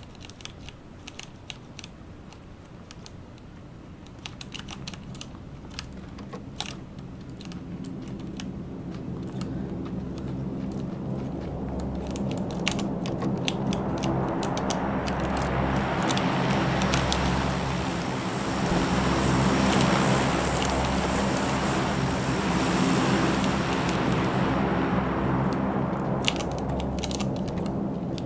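Footsteps patter quickly over ground and wooden floors.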